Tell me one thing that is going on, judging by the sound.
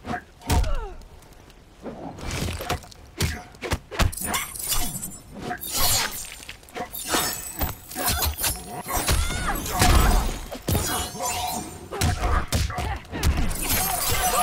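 A fighter grunts and shouts with each strike.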